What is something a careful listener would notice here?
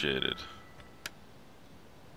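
A soft click sounds once.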